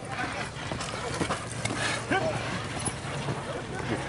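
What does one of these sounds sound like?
Horse hooves clop on dirt.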